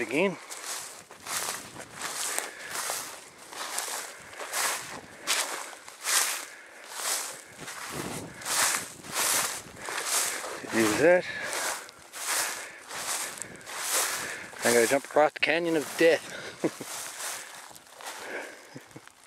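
Footsteps crunch and squelch steadily through wet, boggy grass.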